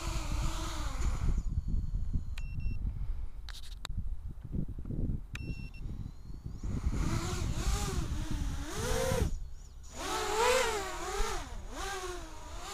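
A small drone's motors whine, rising and falling in pitch as it flies.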